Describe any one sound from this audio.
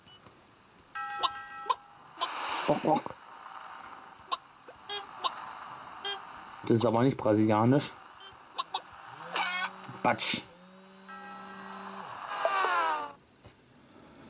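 A mobile game plays short electronic beeps and jingles through a small phone speaker.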